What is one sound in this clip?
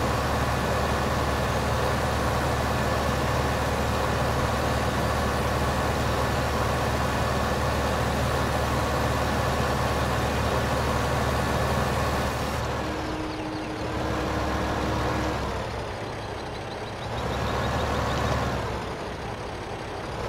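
A seed drill rattles over soil.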